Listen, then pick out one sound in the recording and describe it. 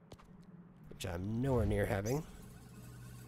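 A video game ball whizzes along a track with a playful warbling tone.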